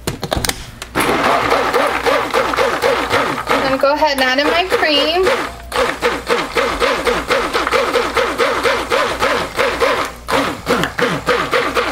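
A hand blender whirs steadily in a liquid.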